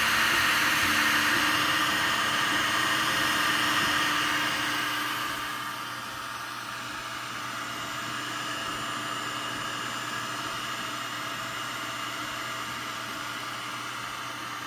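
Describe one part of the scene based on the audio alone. A 3D printer whirs and hums steadily as its motors move the print head.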